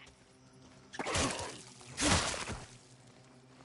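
A wooden bat thuds heavily into a body.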